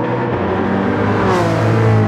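A racing car engine revs higher as it passes close by.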